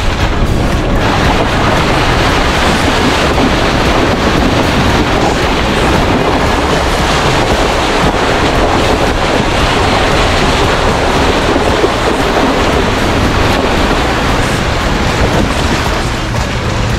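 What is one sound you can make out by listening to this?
Tyres splash and churn through shallow water.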